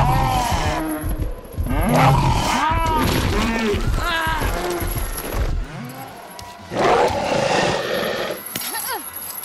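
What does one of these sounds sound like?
Large beasts roar and snarl loudly.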